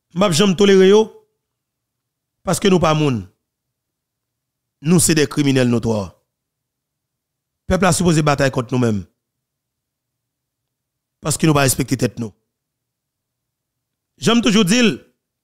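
A man speaks calmly into a close microphone, in short phrases with pauses.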